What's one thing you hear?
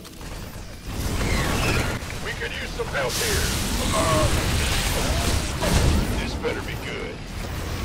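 Gunfire and explosions crackle in a game battle.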